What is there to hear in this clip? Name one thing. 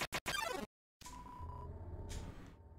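Video game text blips tick as a message types out.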